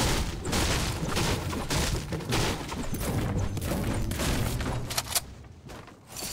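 A pickaxe strikes wood with sharp, repeated thuds.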